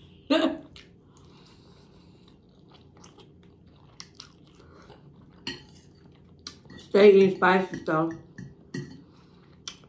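A woman slurps and chews noodles.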